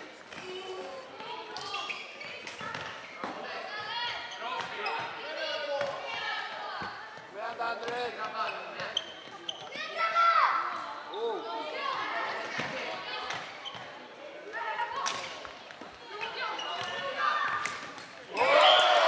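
Sneakers squeak on the hard floor.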